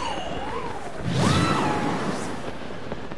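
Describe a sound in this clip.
A loud whoosh sweeps by.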